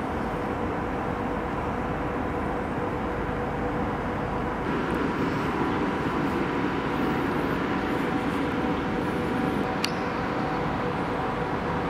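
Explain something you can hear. A distant city hums steadily outdoors.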